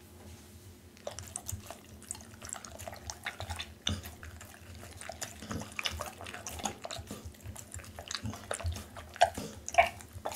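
A dog chews and slurps raw meat close to a microphone, with wet smacking and crunching.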